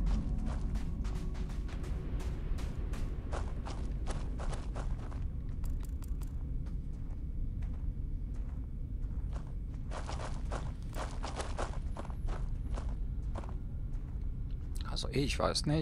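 Footsteps crunch steadily on loose gravel.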